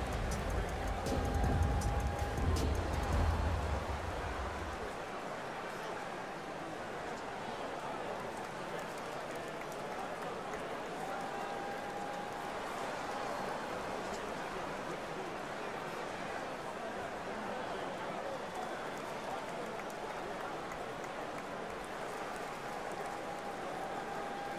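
A large indoor crowd murmurs steadily in an echoing arena.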